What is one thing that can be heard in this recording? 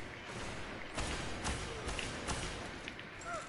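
An energy gun fires in sharp blasts.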